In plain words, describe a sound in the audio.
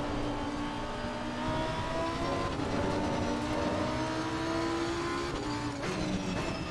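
A racing car engine roars steadily, its pitch rising and dropping as the gears change.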